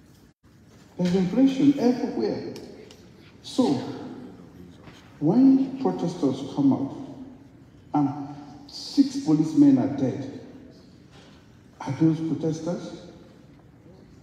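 A woman speaks calmly over a loudspeaker in a large echoing hall.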